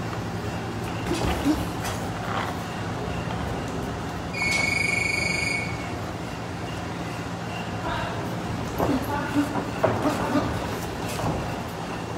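Sneakers squeak and shuffle on a canvas floor.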